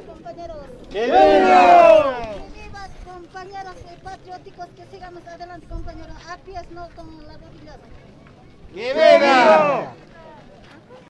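A woman shouts loudly up close.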